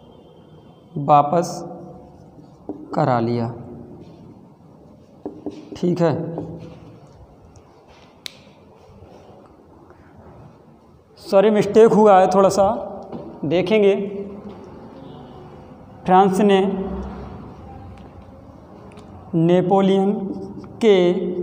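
A young man speaks calmly close by, explaining in short phrases.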